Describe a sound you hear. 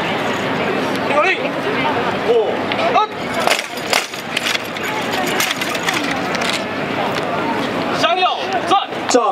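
A crowd of people chatters outdoors in the open.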